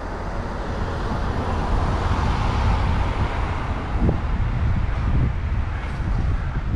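A van drives past in the other direction.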